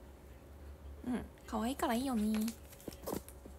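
A young woman speaks close to the microphone with animation.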